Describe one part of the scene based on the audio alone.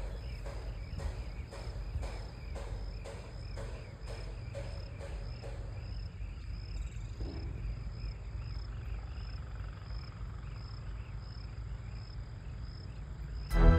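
Birds chirp high overhead in a steady rhythm.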